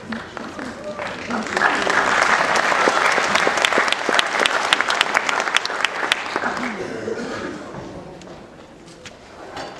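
An audience claps and cheers loudly, then the applause fades.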